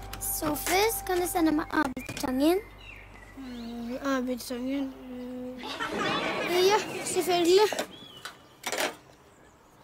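A young girl speaks calmly, close by.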